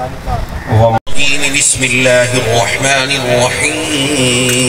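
A man speaks loudly through a microphone and loudspeaker.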